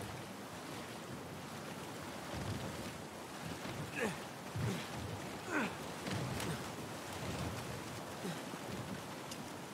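Water rushes and splashes nearby.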